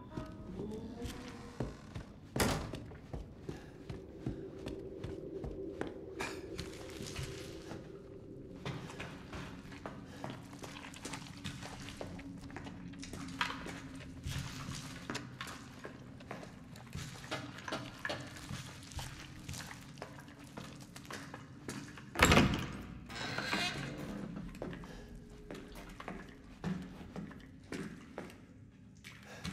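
Footsteps tread slowly across a hard floor.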